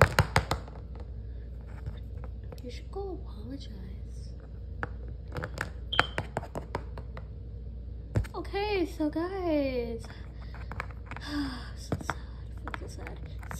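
Small plastic toys tap and clack against a wooden floor.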